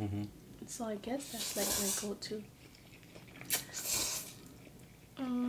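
A man slurps noodles loudly.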